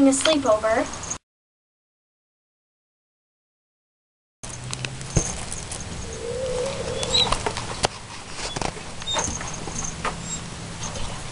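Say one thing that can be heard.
Dry hay rustles and crackles as a rabbit moves through it.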